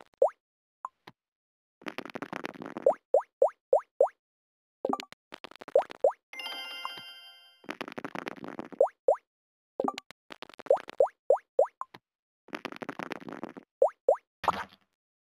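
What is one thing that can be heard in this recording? Game pieces hop across a board with quick, rising popping blips.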